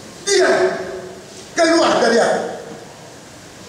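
A middle-aged man preaches, shouting through a microphone in an echoing hall.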